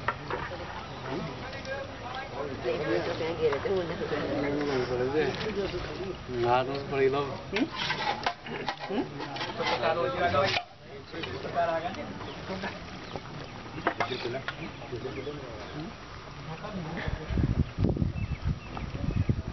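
A group of boys and men chatter nearby outdoors.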